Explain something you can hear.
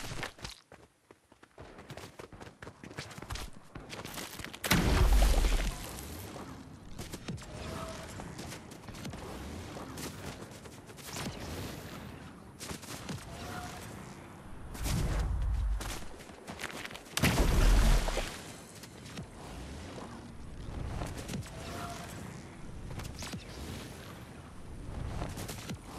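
Quick footsteps run over a road and then grass.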